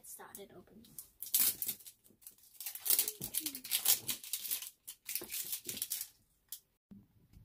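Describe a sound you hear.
Plastic wrapping crinkles and rustles as it is peeled off a can.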